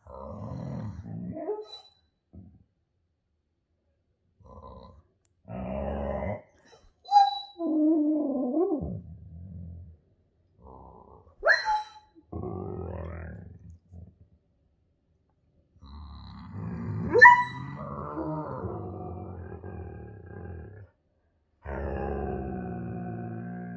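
A dog howls and whines in bursts close by.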